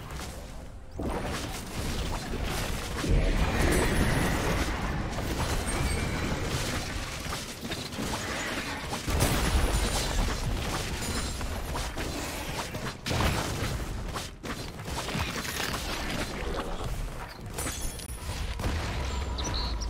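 Spell effects and weapon hits crackle and clash in a video game fight.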